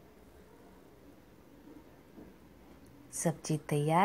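A lid clinks onto a pan.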